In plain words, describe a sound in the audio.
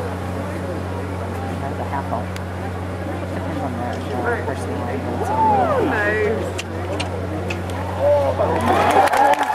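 A crowd of spectators murmurs and chatters nearby.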